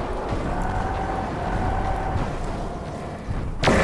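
A laser weapon fires with a buzzing zap.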